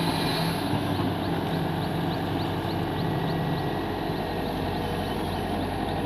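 Wet mud splashes and slops from an excavator bucket.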